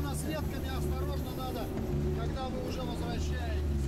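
Water splashes under a vehicle's tracks.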